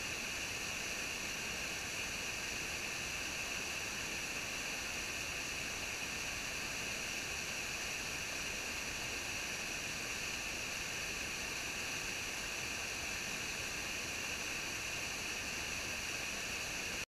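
A small waterfall splashes and rushes steadily over rocks.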